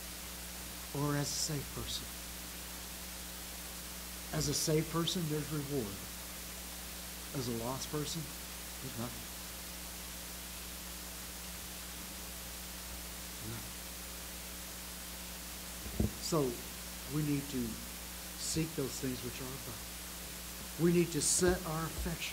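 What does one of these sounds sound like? An elderly man speaks slowly and calmly through a microphone, with long pauses.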